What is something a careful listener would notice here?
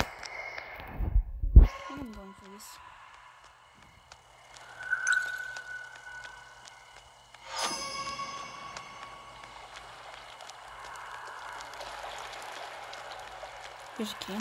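Footsteps patter along a path.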